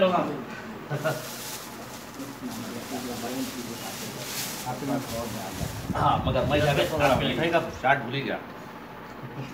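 Several men talk and murmur close by.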